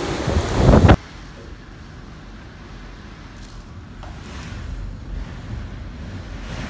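Heavy rain splashes onto a balcony floor.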